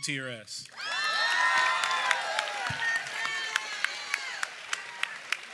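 A crowd cheers and whoops loudly.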